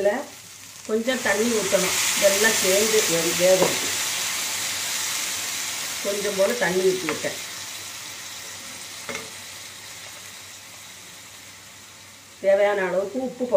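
Water pours into a hot pan and sizzles loudly, then slowly dies down.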